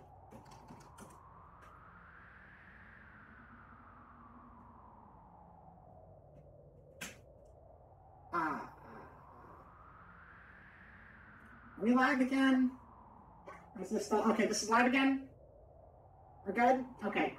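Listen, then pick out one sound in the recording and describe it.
Soft, dreamy game music swells and fades slowly.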